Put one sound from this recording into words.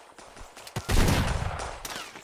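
A gunshot cracks nearby.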